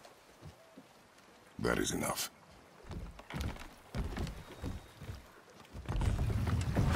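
River water rushes around a wooden boat.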